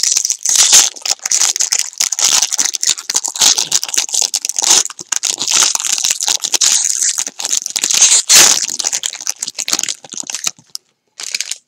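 A foil card pack wrapper crinkles and tears as hands open it.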